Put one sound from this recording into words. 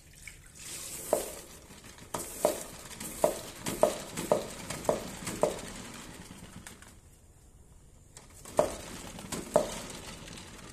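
A mop head is pumped down in a spin bucket, thumping rhythmically.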